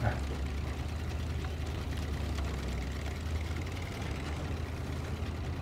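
A truck engine rumbles low and steady as it crawls over rough ground.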